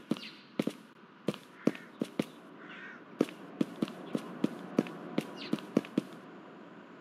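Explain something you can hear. Footsteps tap quickly on pavement.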